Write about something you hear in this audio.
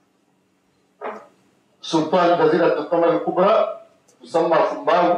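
A man speaks with animation into a microphone in a room with a slight echo.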